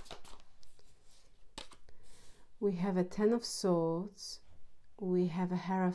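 A card is laid down on a wooden table with a light tap.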